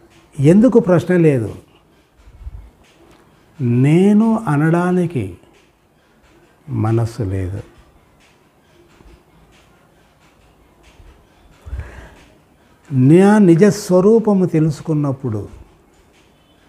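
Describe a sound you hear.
An elderly man speaks calmly and slowly in bursts, close to a microphone, with pauses between phrases.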